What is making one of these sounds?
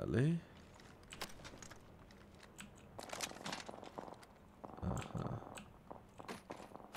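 Quick footsteps and soft clicks come from a video game.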